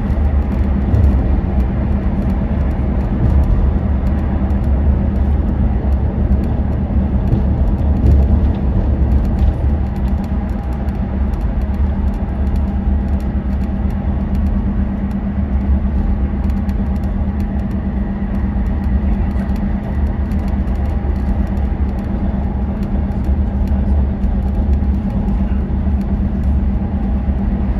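A vehicle's engine hums steadily while driving at speed.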